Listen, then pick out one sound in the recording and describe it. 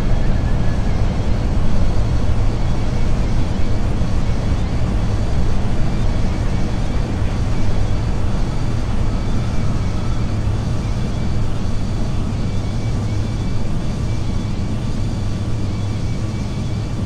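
Jet engines roar steadily as an airliner rolls along a runway.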